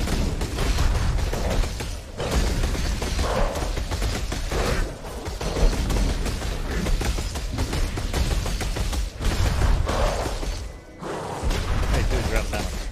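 Magic spells crackle and burst with deep booming thuds.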